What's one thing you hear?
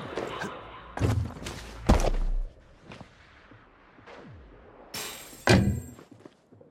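A futuristic gun fires sharp electronic blasts.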